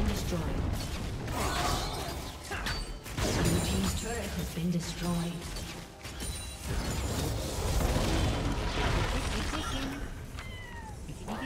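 Magic spells burst and crackle in a busy fight.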